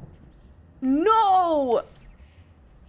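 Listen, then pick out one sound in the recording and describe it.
A young woman exclaims with a rising, sing-song voice.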